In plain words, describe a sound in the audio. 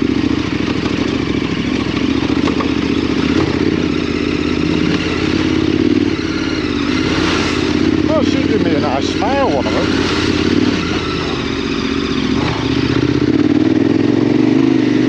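A motorcycle engine drones steadily at low speed.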